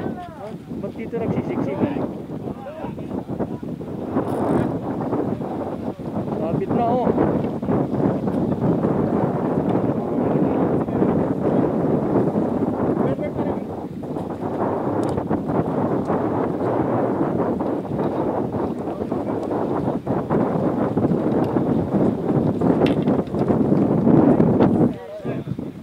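Waves splash against rocks nearby.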